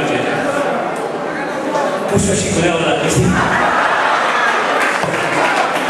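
A large crowd cheers and chatters in an echoing hall.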